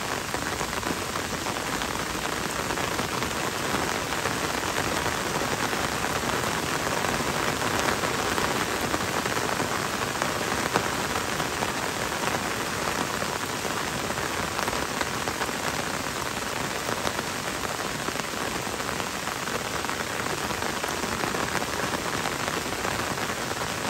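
Gentle rain falls on leaves and a paved road.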